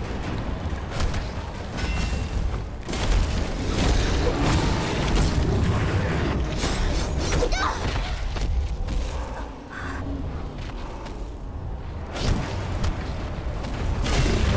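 Swords clash and slash in a game fight.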